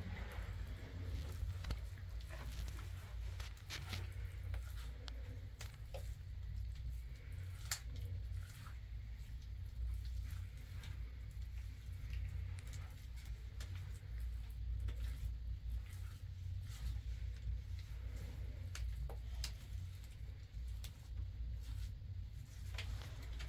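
Wet plaster is pressed and smeared by hand against a wall with soft scraping.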